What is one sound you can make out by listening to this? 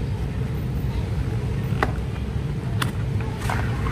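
A cardboard box slides open with light taps and scrapes.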